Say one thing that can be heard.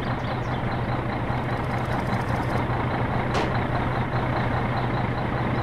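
A diesel engine rumbles steadily at idle.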